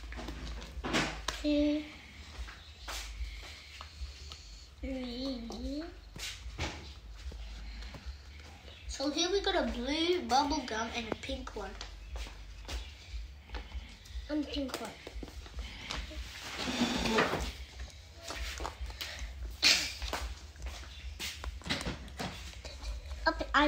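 Paper stickers rustle and tap as children peel and press them.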